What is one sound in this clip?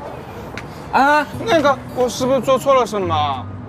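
A young man asks hesitantly, close by.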